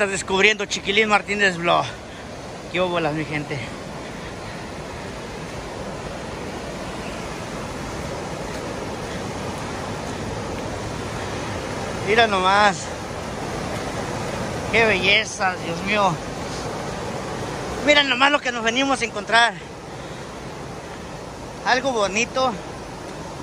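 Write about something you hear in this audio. A waterfall roars steadily, with water rushing over rocks close by.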